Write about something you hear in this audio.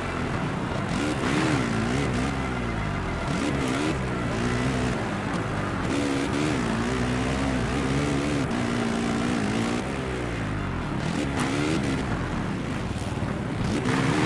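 A dirt bike engine revs up and down loudly throughout.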